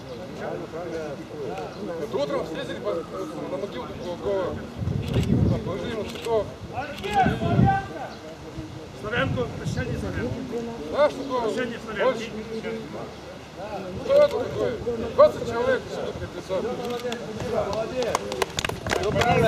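A young man speaks loudly outdoors, as if addressing a crowd.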